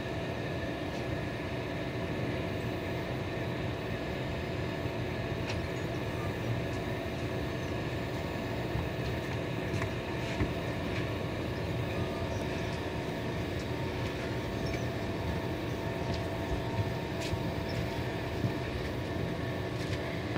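Train wheels clatter and click over rail joints.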